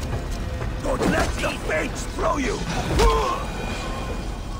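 Weapons strike in a short, close fight.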